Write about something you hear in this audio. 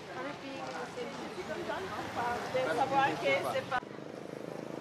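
Several young men and women talk at once nearby, outdoors.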